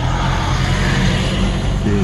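A motorcycle passes by.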